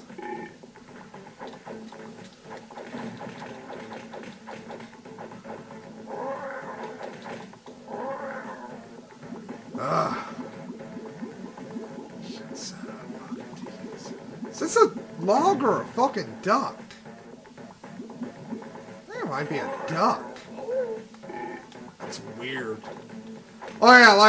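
Lively video game music plays through a small speaker.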